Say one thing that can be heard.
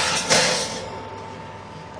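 An oven rack slides out with a metallic scrape.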